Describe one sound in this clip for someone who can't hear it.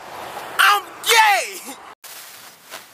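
A young man shouts loudly and excitedly, close by.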